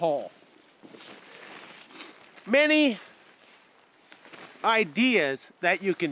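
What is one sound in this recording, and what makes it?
A tarp rustles as a man crawls out from under it.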